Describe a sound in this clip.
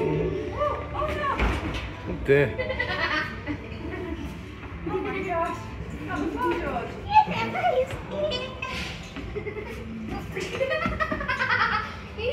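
A young child talks and squeals excitedly nearby.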